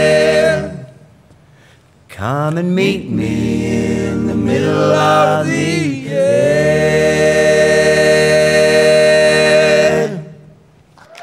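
A group of men sing together in close harmony without instruments.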